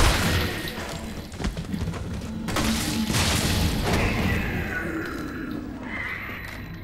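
Zombies groan and moan nearby.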